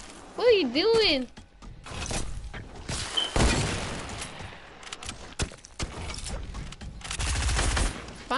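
Wooden walls and ramps snap into place with quick, hollow knocks.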